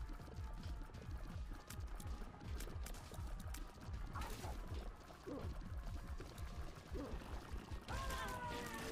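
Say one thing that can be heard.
Video game shots pop and splash rapidly.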